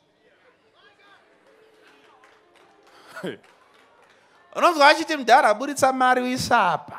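A man preaches loudly with animation through a microphone and loudspeakers.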